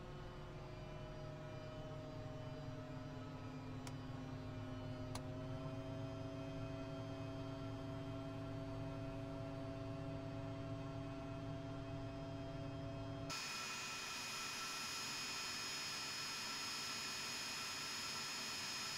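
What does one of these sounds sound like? Jet engines whine and roar steadily.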